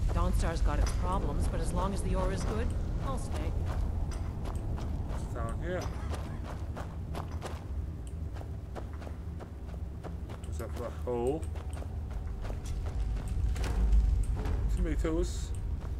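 Footsteps crunch steadily on gravel and stone.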